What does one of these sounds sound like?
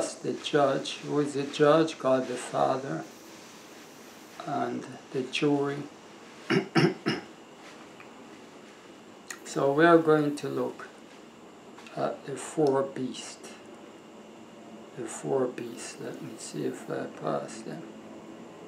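A man speaks calmly and slowly, close to a microphone.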